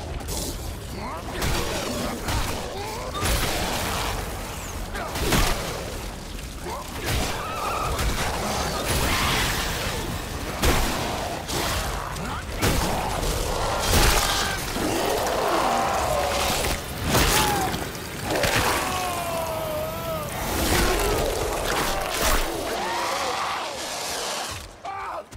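Heavy blows and thuds land during a struggle.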